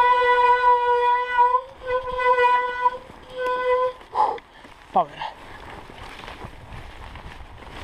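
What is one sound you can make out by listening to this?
Bicycle tyres crunch over snow and dirt.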